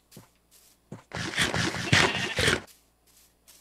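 A sheep bleats loudly nearby.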